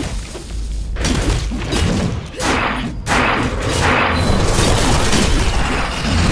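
Heavy blows and explosions boom loudly.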